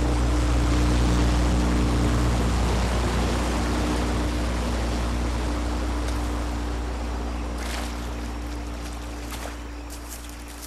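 An airboat engine drones loudly and fades away into the distance.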